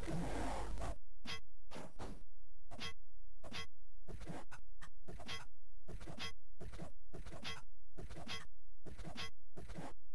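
Weapons strike and creatures hit back in a rapid series of short blows.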